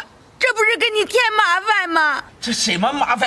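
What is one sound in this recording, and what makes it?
An elderly woman speaks pleadingly, close by.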